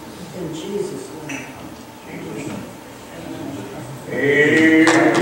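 A man prays aloud.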